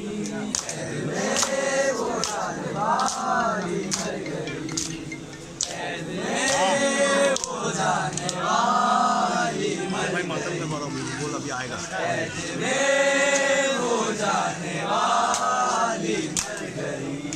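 Hands slap against bare chests in a steady rhythm.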